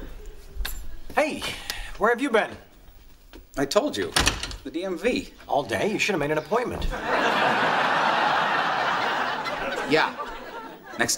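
A second man speaks in a grumbling tone.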